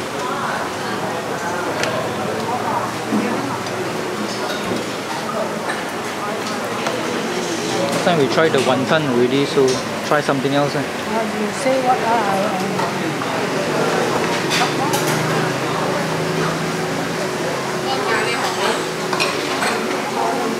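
Several adults chatter nearby in a busy, noisy space.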